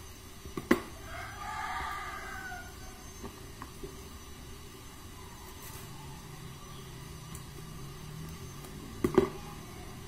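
Paper sheets crinkle as they are shuffled.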